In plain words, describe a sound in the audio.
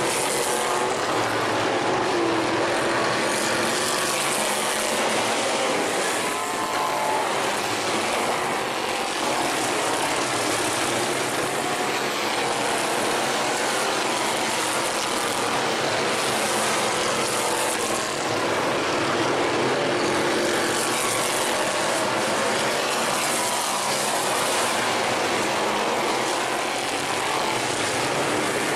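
Race car engines roar loudly around a dirt track.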